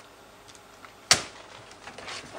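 A laptop lid snaps shut.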